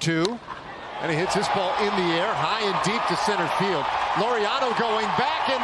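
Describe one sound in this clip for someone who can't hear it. A large crowd cheers loudly in a stadium.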